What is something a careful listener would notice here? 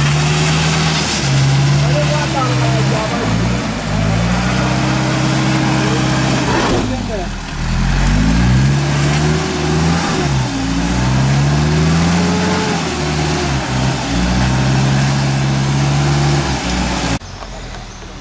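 A van engine revs loudly.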